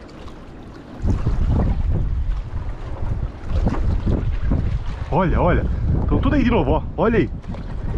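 A fish splashes at the surface of the water close by.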